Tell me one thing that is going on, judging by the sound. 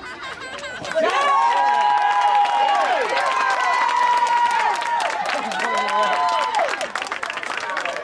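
A woman close by cheers loudly.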